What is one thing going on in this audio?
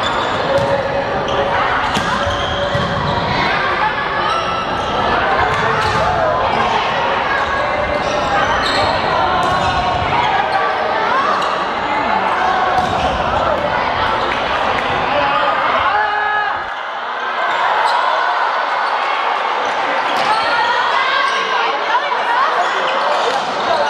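Players' shoes squeak on the hard floor.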